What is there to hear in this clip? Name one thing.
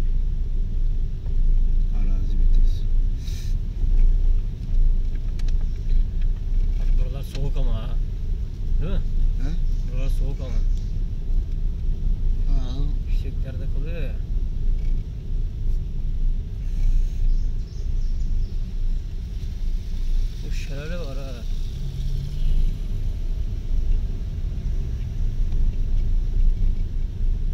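A car's tyres rumble steadily over cobblestones.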